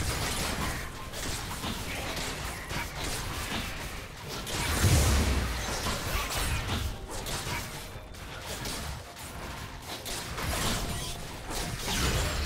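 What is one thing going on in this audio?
Magical spell effects whoosh and crash during a fight.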